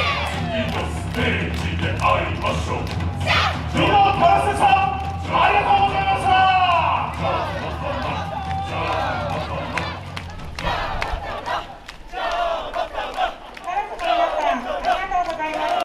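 A crowd of men and women chant and shout loudly outdoors.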